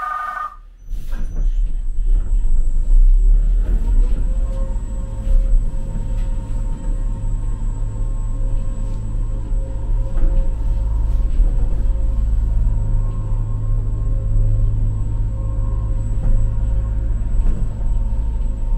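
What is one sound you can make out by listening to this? A motor hums and whines steadily as the cabin moves.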